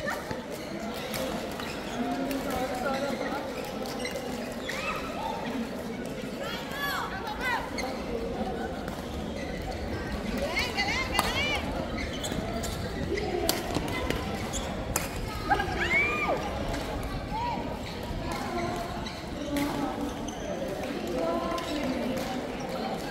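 Shuttlecocks are hit with rackets with sharp pops.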